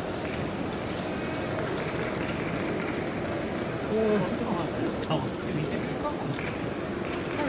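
A crowd murmurs steadily across a large open stadium.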